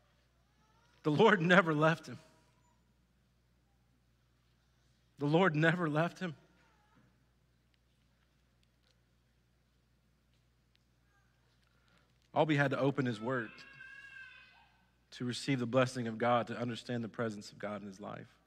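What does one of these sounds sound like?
A man speaks calmly into a microphone in a large echoing hall, with long pauses.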